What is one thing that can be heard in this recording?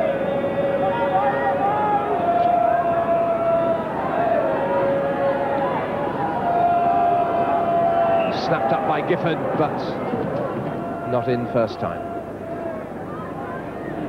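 A large stadium crowd chants and sings.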